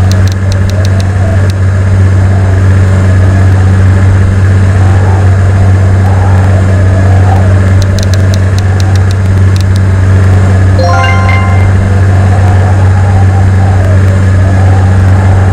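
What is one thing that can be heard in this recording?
Propeller engines of a plane drone steadily.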